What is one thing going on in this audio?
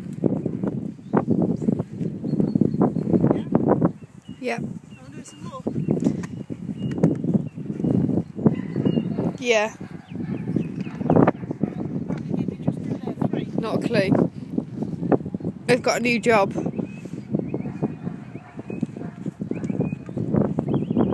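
A woman calls out excitedly to a dog.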